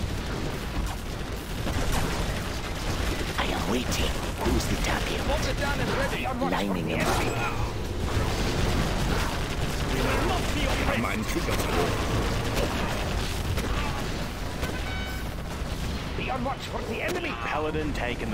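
Explosions boom and rumble throughout a battle.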